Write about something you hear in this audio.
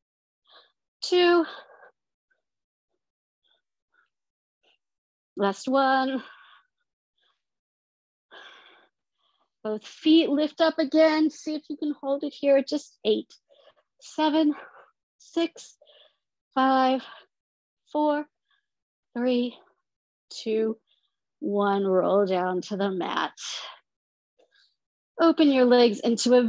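A woman gives calm exercise instructions in short phrases, heard through an online call.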